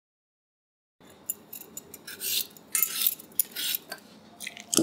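A peeler scrapes the skin off a potato in short, rasping strokes.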